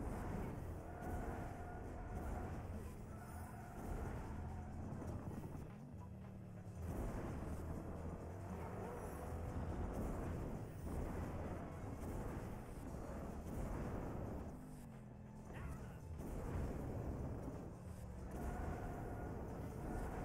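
Rocket boosters roar in bursts.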